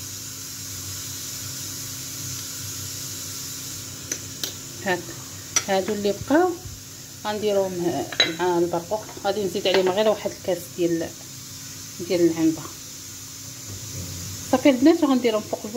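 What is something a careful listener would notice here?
A metal spoon clinks against a metal pot.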